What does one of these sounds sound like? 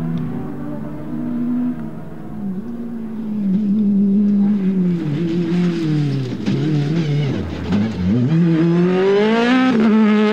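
A second rally car engine roars and revs as the car races by.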